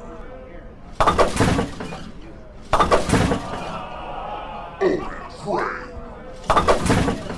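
Bowling pins clatter loudly as a ball crashes into them.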